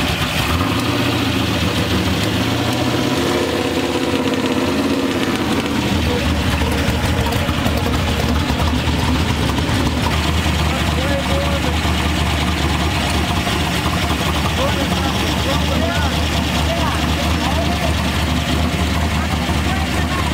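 A car engine runs loudly close by, rumbling steadily.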